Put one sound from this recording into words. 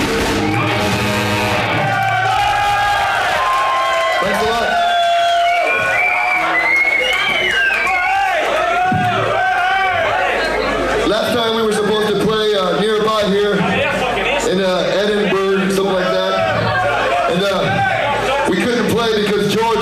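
A band plays loudly in a large echoing hall.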